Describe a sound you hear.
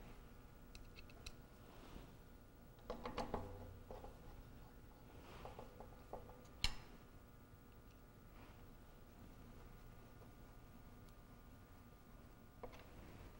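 A screwdriver clicks and scrapes against a metal lock.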